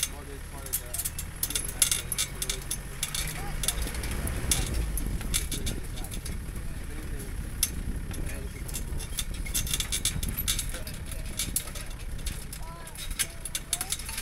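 Tyres crunch and rattle over a bumpy dirt track.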